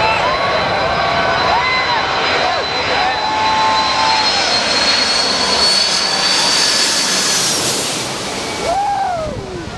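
A jet airliner roars loudly as it flies low overhead, its engine whine rising.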